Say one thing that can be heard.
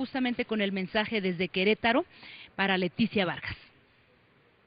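A woman speaks with feeling into a microphone.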